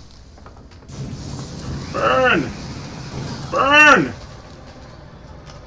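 A flamethrower roars with a burst of fire.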